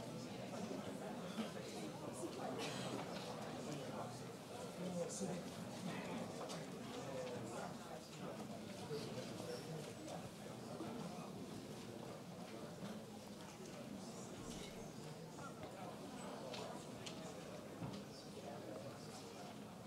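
A man speaks steadily through a microphone in a large, echoing hall.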